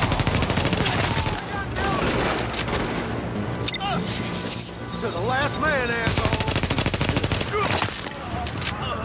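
Rifle shots ring out in bursts.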